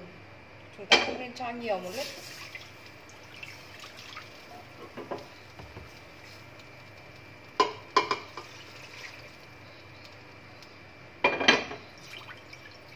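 A plastic lid knocks and rattles against a metal pan.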